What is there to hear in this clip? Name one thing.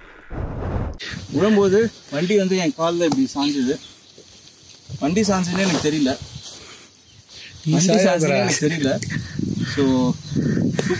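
A young man talks with animation to a microphone outdoors.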